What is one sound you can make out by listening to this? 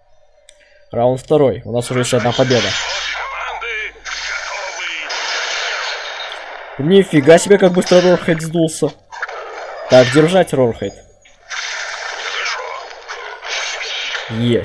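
Game fighting sounds whoosh and crash in bursts.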